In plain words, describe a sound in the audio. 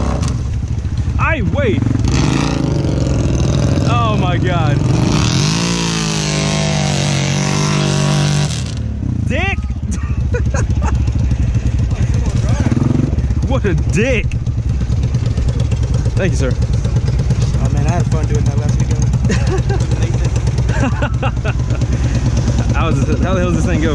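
A quad bike engine revs up and down.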